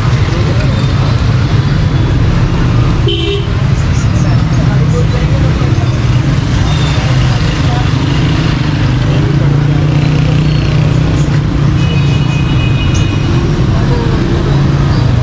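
Street traffic and crowd noise murmur steadily outdoors.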